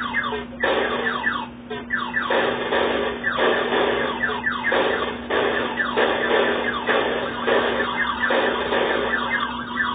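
Rocks explode with crackling noise bursts.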